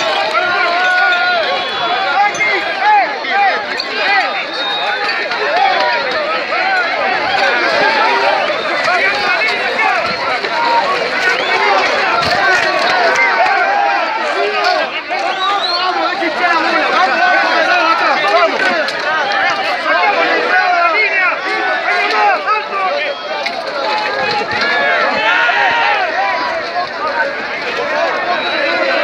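A large crowd of men and women shouts and chants loudly and close by, outdoors.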